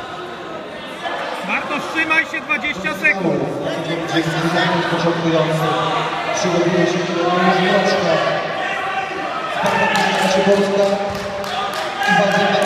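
A man shouts loud instructions close by.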